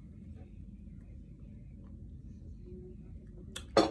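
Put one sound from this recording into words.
A straw stirs a drink in a glass.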